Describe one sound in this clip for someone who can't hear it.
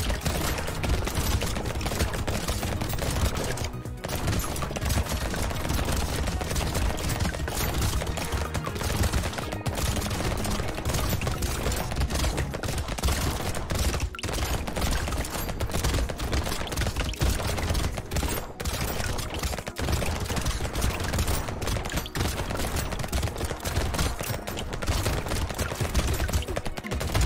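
Rapid gunfire from a video game rattles on without pause.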